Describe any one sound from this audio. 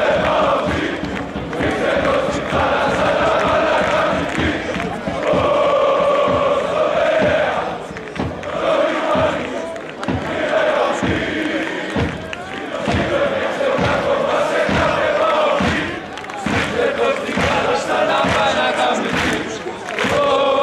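Drums beat steadily among the crowd.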